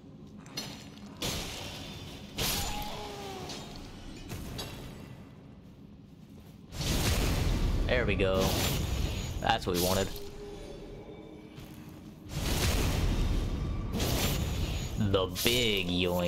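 A sword strikes and clangs in a fight.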